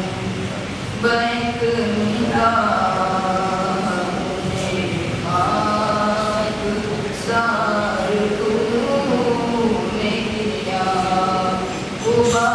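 A man chants in a long, melodic voice through a microphone and loudspeakers in an echoing hall.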